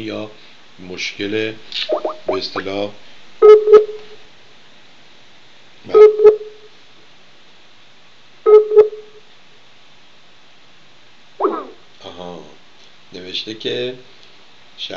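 An older man speaks calmly and closely into a microphone, with pauses.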